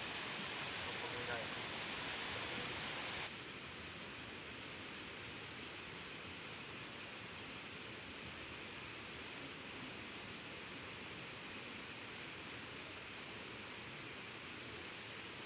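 Leaves rustle softly in a light breeze outdoors.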